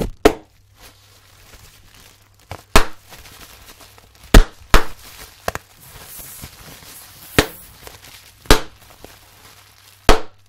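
Paper banknotes rustle and flap in a man's hands.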